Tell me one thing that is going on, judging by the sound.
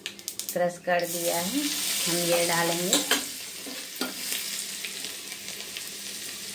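Food sizzles loudly in hot oil.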